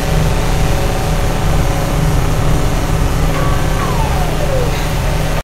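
A deep electric rumble drones steadily.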